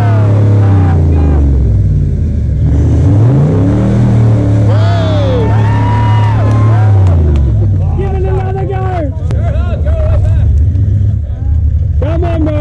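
Tyres churn and spin in thick mud.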